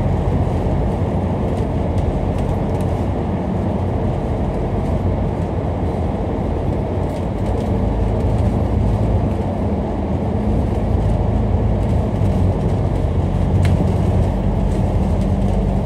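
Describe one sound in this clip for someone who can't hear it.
Traffic roars with a low, echoing rumble.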